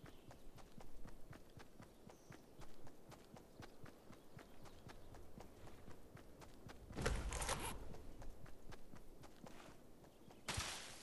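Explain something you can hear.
Quick footsteps patter steadily on grass.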